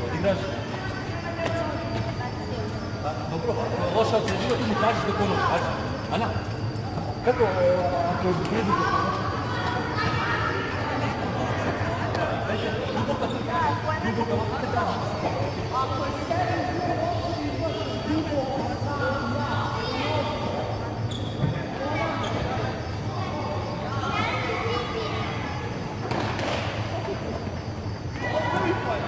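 A man speaks to children, echoing in a large hall.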